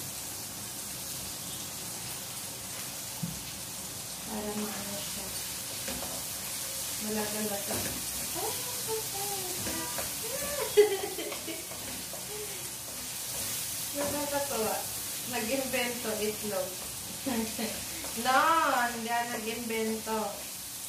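A spatula scrapes and clinks in a frying pan.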